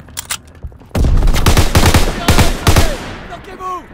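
A rifle fires rapid bursts of loud, sharp shots.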